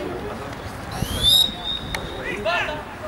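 A referee's whistle blows once sharply.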